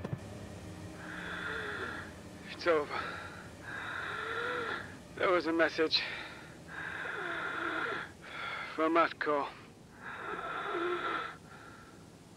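A person breathes loudly and rhythmically through a respirator mask.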